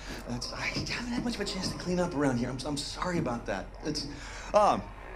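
A second man answers in a relaxed voice.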